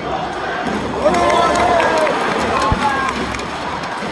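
A crowd of fans chants in unison from the stands.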